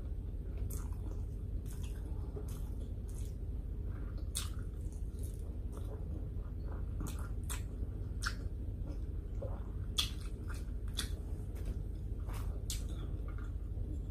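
A woman chews food with wet, smacking sounds close to a microphone.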